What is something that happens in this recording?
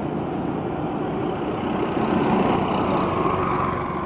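A motorcycle engine hums as it passes.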